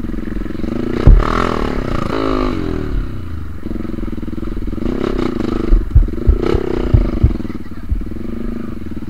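A motorcycle bumps and knocks over rough ground.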